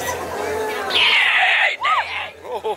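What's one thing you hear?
A fog machine hisses in a short burst.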